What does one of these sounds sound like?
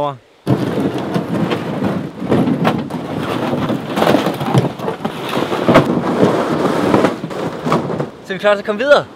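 A canoe hull scrapes and drags across grass.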